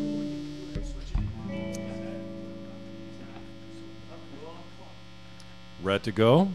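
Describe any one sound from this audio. An electric guitar chord rings out and slowly fades.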